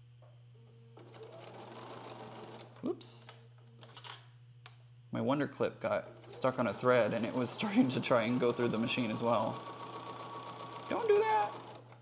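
A sewing machine whirs in short bursts.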